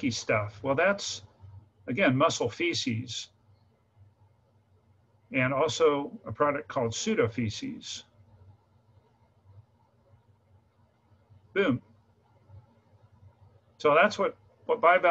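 A middle-aged man speaks calmly through an online call, in short bursts with pauses.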